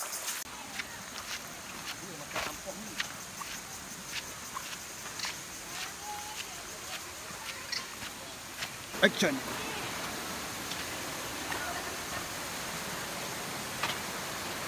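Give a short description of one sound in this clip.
Sandals slap and scuff on a dirt path in slow footsteps.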